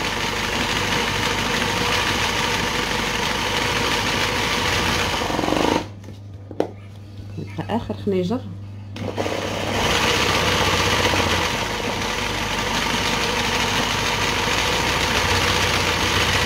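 An embroidery machine hums and whirs as its needle stitches through cloth.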